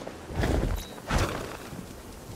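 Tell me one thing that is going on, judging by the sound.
A heavy body lands on hard ground with a thud.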